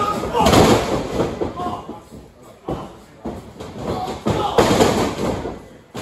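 Wrestlers' bodies thud onto a wrestling ring mat.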